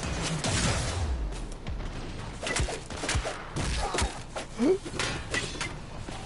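Energy weapons fire in quick bursts.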